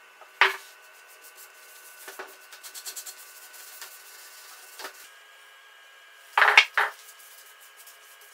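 A plastic spreader scrapes glue across wood.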